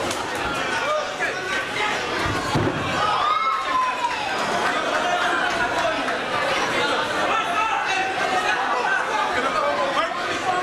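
A crowd of spectators shouts and cheers indoors.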